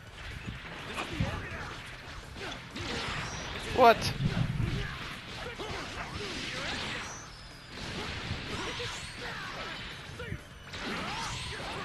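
Energy blasts whoosh and crackle in a fighting game.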